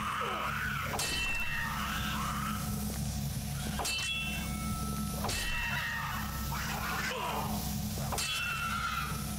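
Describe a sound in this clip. A blade swings and strikes with sharp metallic hits.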